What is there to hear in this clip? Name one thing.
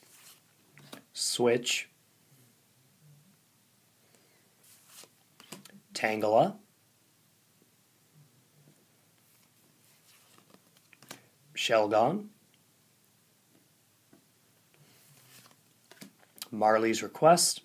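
Stiff cards rustle and slide against each other in a hand.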